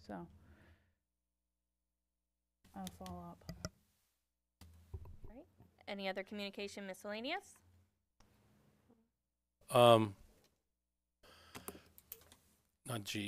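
Adults speak by turns through microphones, with short pauses between remarks.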